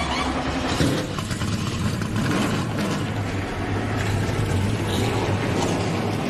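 An engine rumbles with a deep, steady drone.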